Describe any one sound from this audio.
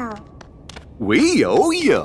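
A young man speaks cheerfully.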